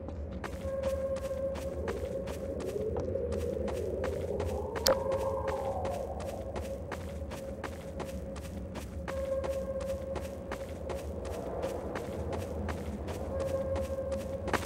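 Footsteps tread quickly and evenly over ground.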